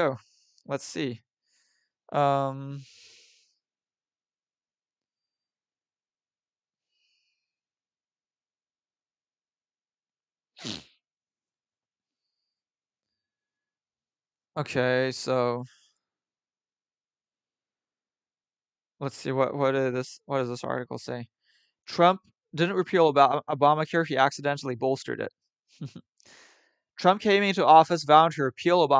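A young man speaks casually and close to a microphone, in bursts with pauses.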